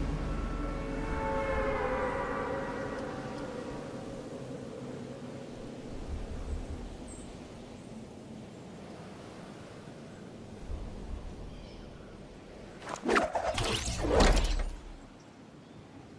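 Wind roars steadily past during a fast freefall dive.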